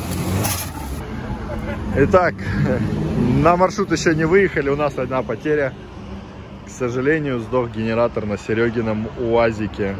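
Young men talk casually nearby outdoors.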